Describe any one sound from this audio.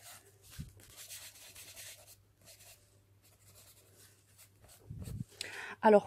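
A tissue rubs over paper.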